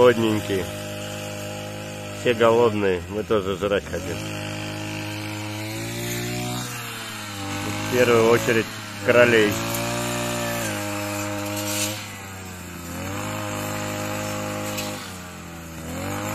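A petrol grass trimmer engine runs steadily nearby, its pitch rising and dropping as it revs.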